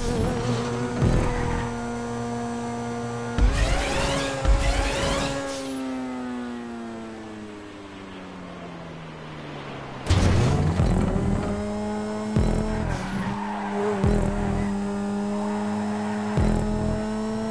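A car suspension thuds heavily as the car lands and bumps over the track.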